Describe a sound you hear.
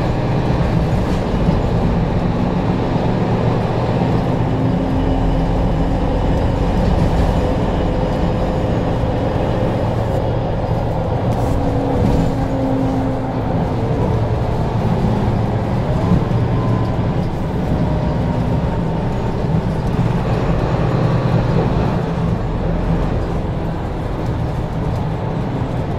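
A car engine hums steadily as it drives along a road.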